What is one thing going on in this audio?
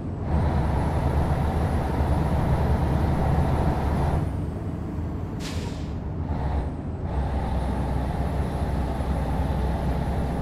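A truck engine drones steadily from inside the cab, easing off briefly before picking up again.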